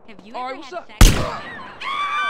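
A gunshot cracks loudly once.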